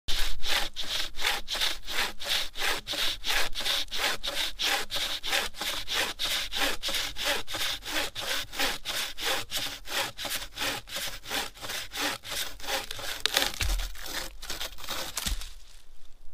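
A saw rasps back and forth through wood in quick, steady strokes.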